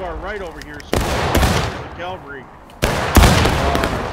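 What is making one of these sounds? A rifle fires loudly close by.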